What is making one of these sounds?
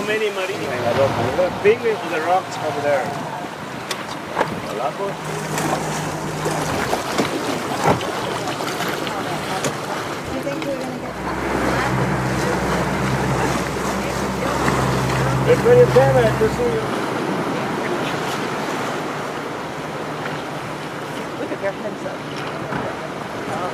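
Water laps and splashes against rocks.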